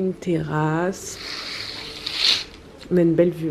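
A curtain slides and rustles along its rail.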